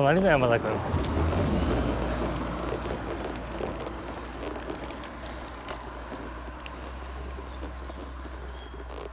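A car drives past close by and fades away.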